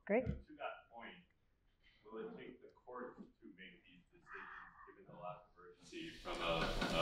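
A man speaks calmly over a loudspeaker in a large hall.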